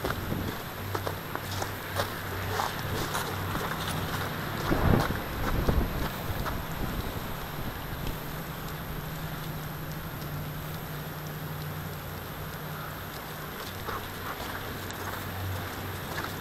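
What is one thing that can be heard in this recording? Footsteps crunch on icy snow.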